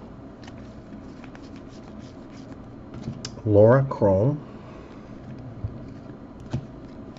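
Trading cards flick and rustle softly as they are shuffled by hand.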